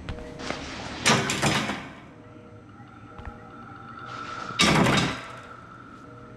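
A metal gate rattles and clangs as it is pushed open.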